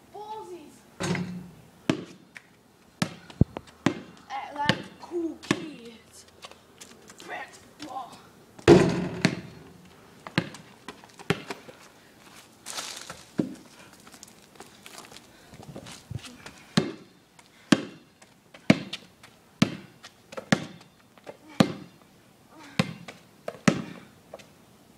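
A basketball bounces on pavement outdoors.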